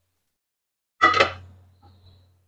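A metal pan clanks as it is set down on a gas stove.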